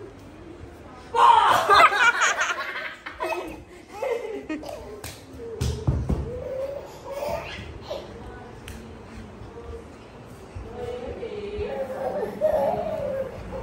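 A toddler squeals and babbles excitedly.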